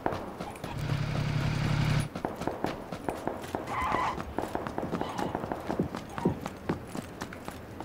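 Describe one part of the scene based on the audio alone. Footsteps run quickly on dirt and pavement.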